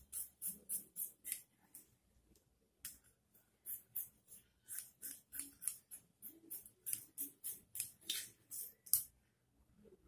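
Scissors snip through cloth in quick, crisp cuts.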